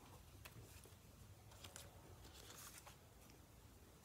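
Paper cards rustle and slide on a wooden table.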